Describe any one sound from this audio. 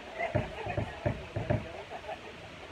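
Drums thump loudly.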